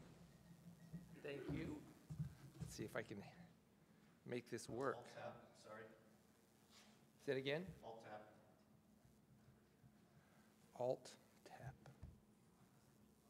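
A man speaks more quietly from farther off in the room.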